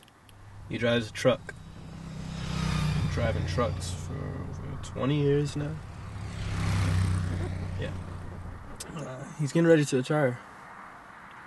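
A young man speaks quietly close by.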